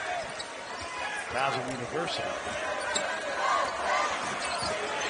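A large indoor crowd murmurs in an echoing arena.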